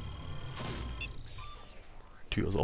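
Electronic beeps chime briefly.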